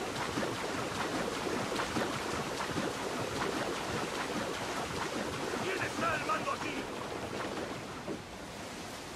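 Water splashes and churns as a swimmer strokes through choppy waves.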